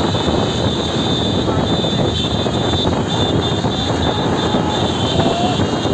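Several motorcycle engines rumble steadily close by.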